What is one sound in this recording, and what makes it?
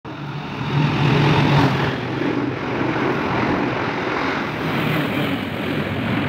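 A train's engine drones loudly as it passes.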